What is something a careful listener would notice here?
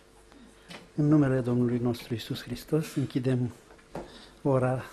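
An elderly man speaks calmly into a microphone, reading out.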